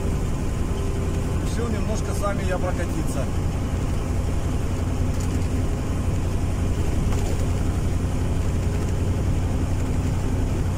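A motorcycle engine hums steadily while riding along.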